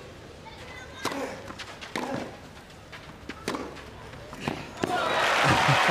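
A tennis ball is struck back and forth with sharp pops of the racket.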